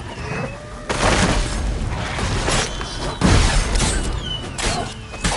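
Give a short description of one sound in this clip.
A burst of fire roars loudly.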